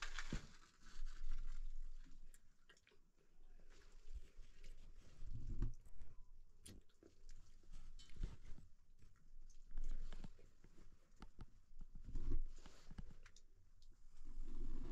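Small twigs and kindling crackle and rustle under hands.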